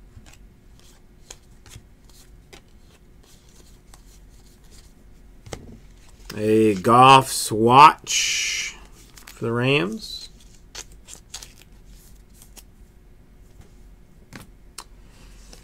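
Stiff cards rustle and flick softly as they are shuffled by hand.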